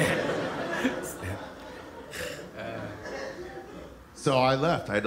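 Two young men laugh heartily close by.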